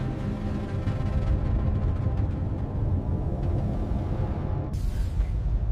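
Bubbles gurgle from a scuba diver's regulator underwater.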